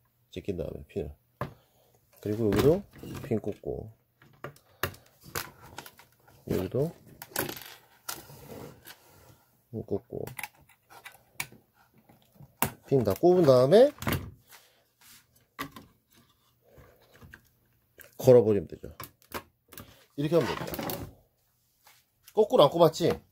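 Small metal and plastic parts click and tap as they are handled up close.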